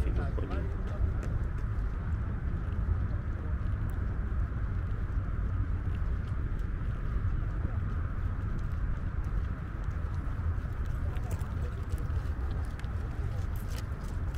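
Footsteps patter on pavement as people run past.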